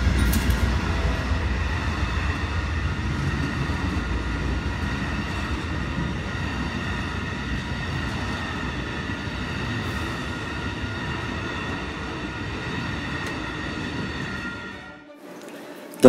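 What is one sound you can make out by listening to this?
A railroad crossing bell rings steadily.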